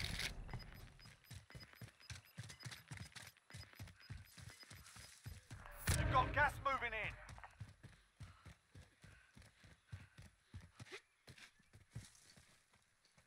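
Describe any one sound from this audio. Quick footsteps run over dirt and grass.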